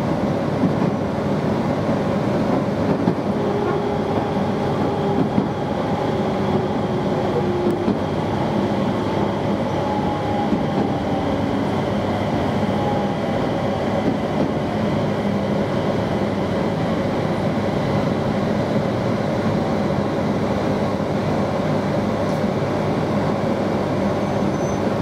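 An electric train rumbles along the rails, heard from inside a carriage.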